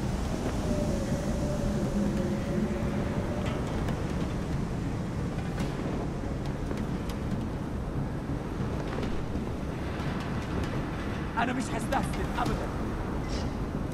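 Soft footsteps shuffle on a hard floor.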